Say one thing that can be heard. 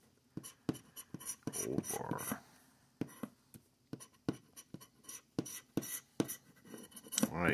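A plastic scraper scratches rapidly across a card, in short rasping strokes.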